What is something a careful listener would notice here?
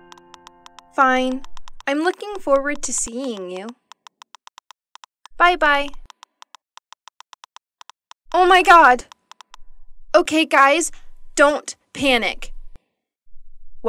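A young woman talks cheerfully, then speaks with annoyance.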